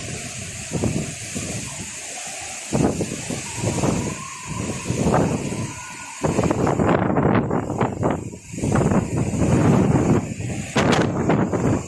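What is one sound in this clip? Strong wind gusts roar through thrashing trees outdoors.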